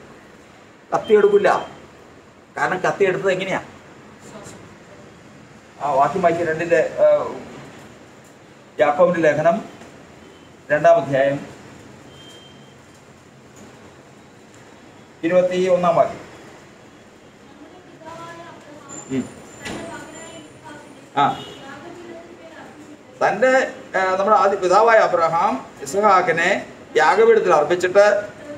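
An elderly man speaks with animation in bursts, close by, in a bare room with a slight echo.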